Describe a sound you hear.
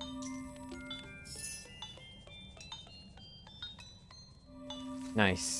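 Coins chime in quick rising notes.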